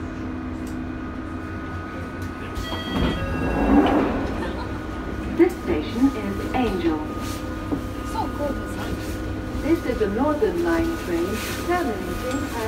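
A subway train rumbles steadily.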